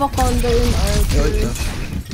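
A game's energy weapon fires in rapid zapping bursts.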